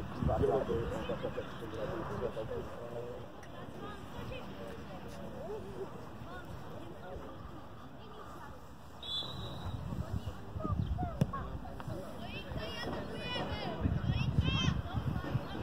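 Young players shout and call to each other outdoors in the open.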